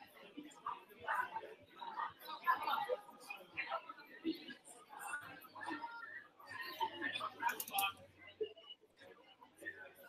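A group of men and women chat and murmur nearby.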